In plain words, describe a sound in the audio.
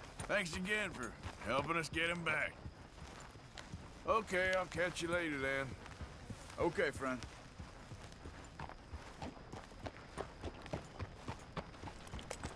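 A horse's hooves thud slowly on soft ground.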